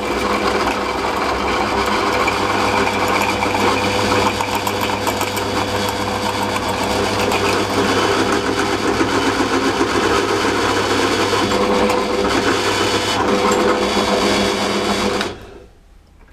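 A drill press motor hums steadily and then winds down.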